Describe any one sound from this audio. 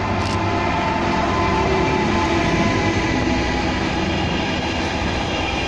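Freight wagons clatter and rumble over the rails.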